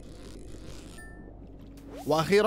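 A short chime rings as a fish is caught.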